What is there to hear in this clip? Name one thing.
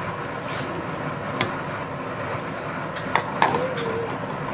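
A metal pot lid clinks as it is lifted off.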